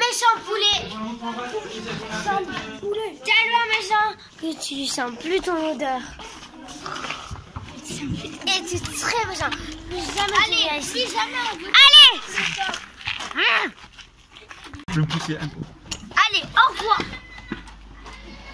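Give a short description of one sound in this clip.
Young girls talk and shout excitedly close by.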